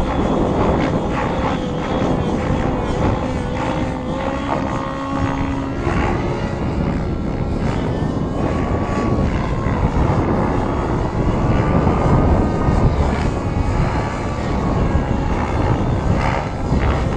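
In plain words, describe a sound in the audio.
A nitro radio-controlled helicopter whines as it flies overhead, its engine pitch rising and falling.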